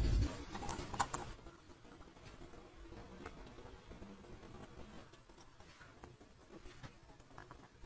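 Metal tweezers tick and click against a watch movement.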